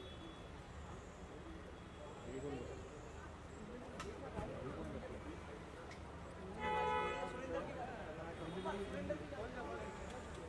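A crowd of men talk over one another nearby.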